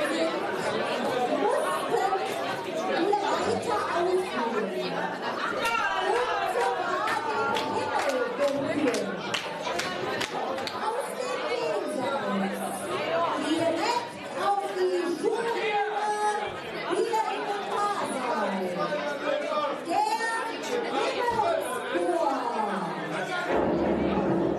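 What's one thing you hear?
A young woman sings through a loudspeaker system in a large hall.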